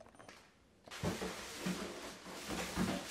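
A plastic bag crackles.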